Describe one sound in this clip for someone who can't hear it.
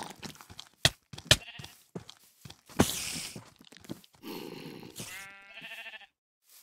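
Footsteps thud on grass.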